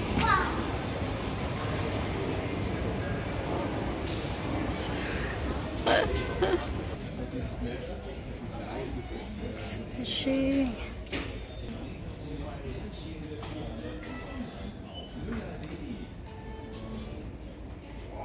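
A low murmur of a large indoor space hums steadily.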